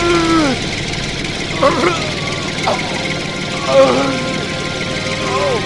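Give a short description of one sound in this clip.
A tractor engine rumbles as it drives away.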